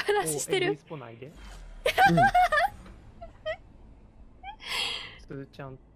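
A young woman speaks cheerfully and with animation through a microphone.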